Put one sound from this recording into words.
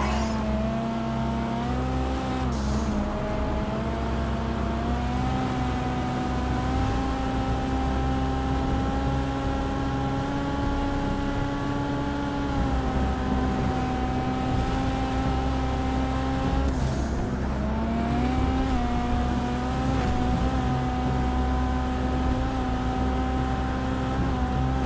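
A sports car engine roars steadily at speed, dropping briefly as it shifts gears.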